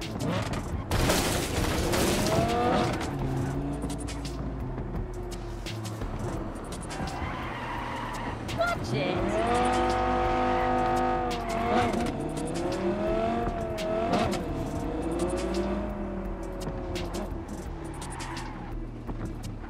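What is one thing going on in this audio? Car tyres screech during sharp turns.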